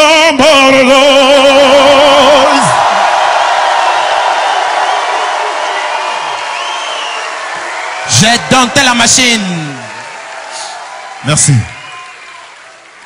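A man sings a long held note into a microphone, ringing out with a long echo.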